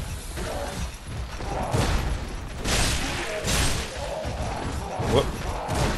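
Metal blades clash and strike in a close fight.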